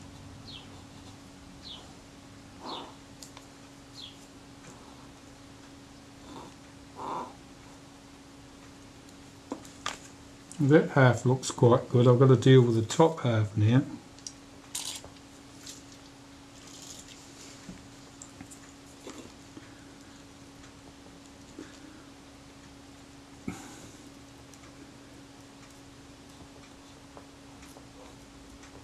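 A cotton swab rubs softly against a hard surface.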